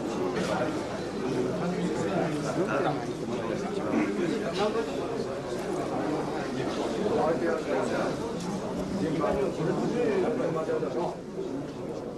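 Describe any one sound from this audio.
A crowd of men chatter close by.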